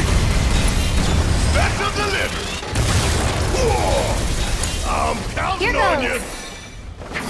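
Explosions boom and crackle loudly.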